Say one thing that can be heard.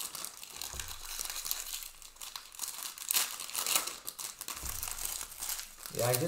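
Foil card packs crinkle and rustle as they are handled close by.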